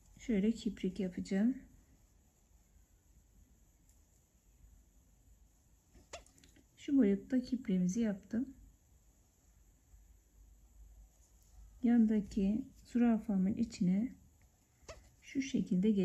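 Thread softly rasps as it is pulled through thin fabric.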